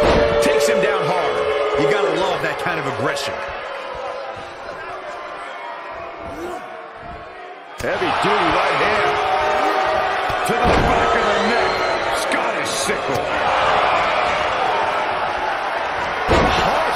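A crowd cheers loudly in a large arena.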